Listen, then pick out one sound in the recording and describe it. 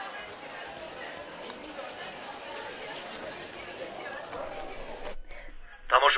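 Children chatter and bustle in a room.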